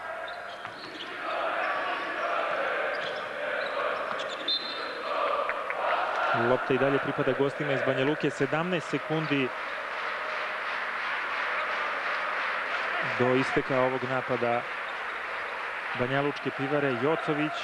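A crowd cheers and roars in a large echoing arena.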